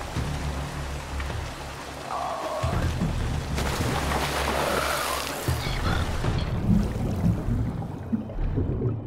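Water rushes and splashes nearby.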